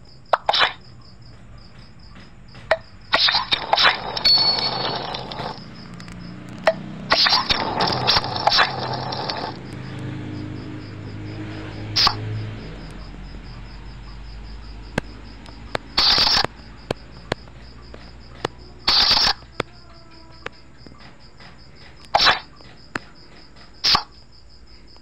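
Short game sound effects click and chime as cards are played.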